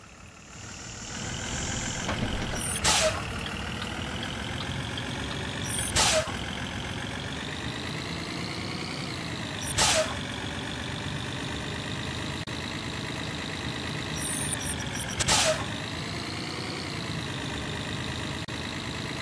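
A bus engine hums and drones as it drives.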